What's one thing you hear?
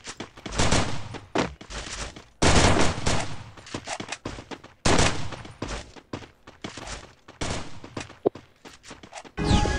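Punches land with dull thuds in a game fight.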